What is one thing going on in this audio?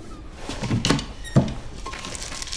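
A wooden cabinet flap swings down and lands with a knock.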